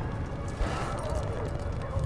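A helicopter's rotor thumps nearby.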